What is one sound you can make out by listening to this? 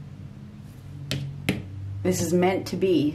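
A playing card is set down on a stack of cards.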